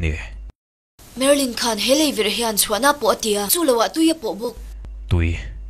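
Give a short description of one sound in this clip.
A young man speaks in a low, tense voice.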